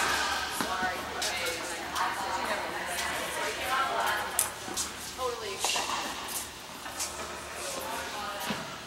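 Tennis rackets strike balls, echoing in a large indoor hall.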